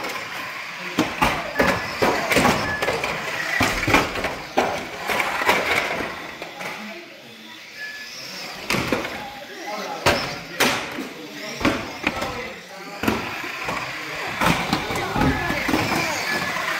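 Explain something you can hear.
Toy cars knock against the track's wooden sides.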